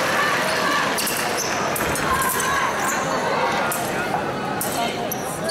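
Fencing blades clash with sharp metallic clicks.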